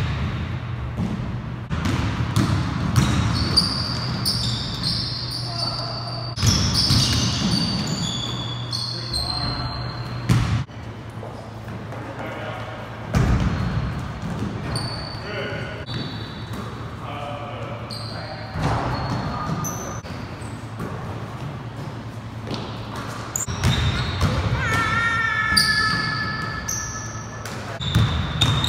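A basketball bounces on a wooden floor with hollow thuds.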